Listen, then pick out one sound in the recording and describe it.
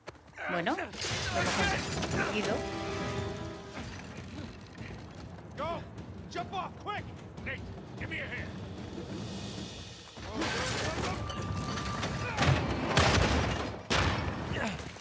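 Wooden planks creak and crash as a platform falls.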